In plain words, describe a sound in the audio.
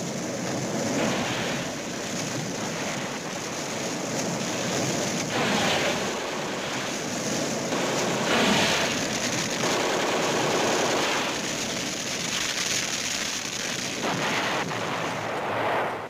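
Flames crackle and roar as brush burns.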